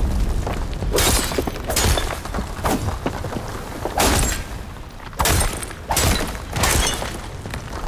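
Energy blasts fire in sharp, crackling bursts.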